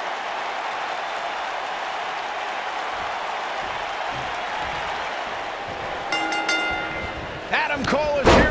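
A large crowd cheers and roars in an arena.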